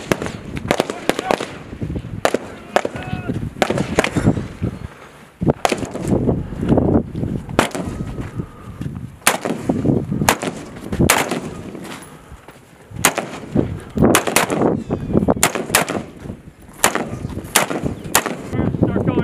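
Rifle shots crack sharply and echo outdoors, one after another.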